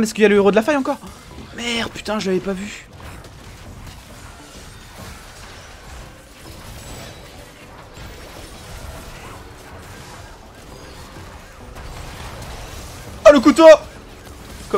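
Game combat effects crackle and whoosh faintly in the background.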